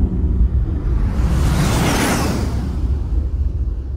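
A jet roars past and fades.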